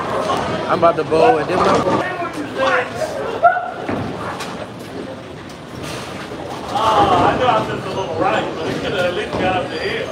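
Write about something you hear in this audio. Voices chatter in a large echoing hall.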